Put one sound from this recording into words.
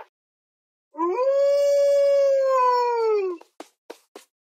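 A wolf gives a long, steady howl.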